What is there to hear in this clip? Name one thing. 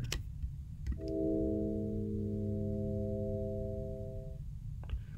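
A steady electronic tone with several pitches sounds and then stops.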